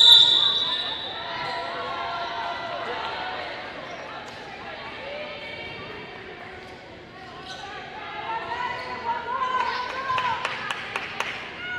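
Players shout and cheer in a large echoing hall.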